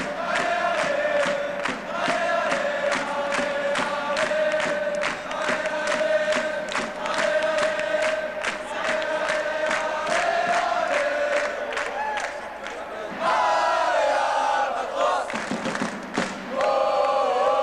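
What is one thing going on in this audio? A crowd of fans chants loudly in rhythm in a large echoing hall.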